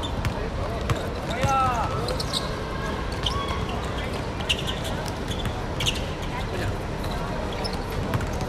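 Young men shout to each other across an outdoor court.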